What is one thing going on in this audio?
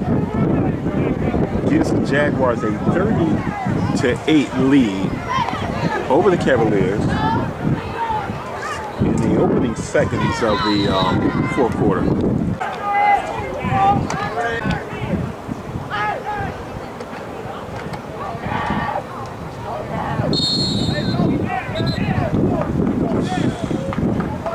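Men and boys shout and call out outdoors.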